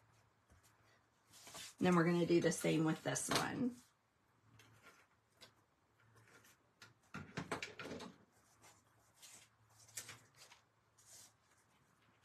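Paper rustles and slides softly on a table.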